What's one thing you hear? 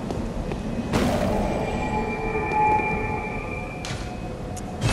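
A bell-like chime rings out and fades.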